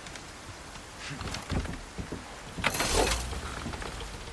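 A small boat engine starts with a pull cord and sputters.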